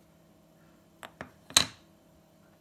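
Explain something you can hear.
A pottery shard clicks as it is set down on a wooden table.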